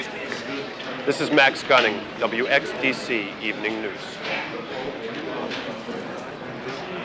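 A man speaks warmly into a microphone over a loudspeaker in a large echoing hall.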